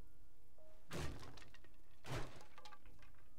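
An axe strikes wood with sharp chopping blows.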